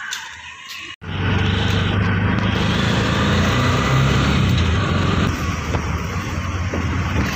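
A small three-wheeler engine putters and rumbles steadily up close.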